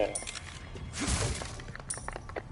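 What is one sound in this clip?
A wooden crate smashes and splinters.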